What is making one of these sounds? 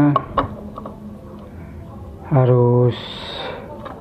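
A metal bulb clicks into a plastic socket.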